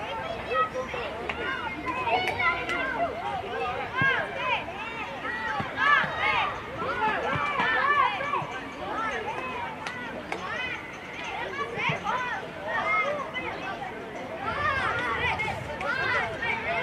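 Children shout and call out across an outdoor pitch.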